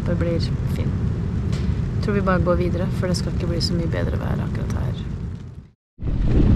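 A woman speaks quietly and close by.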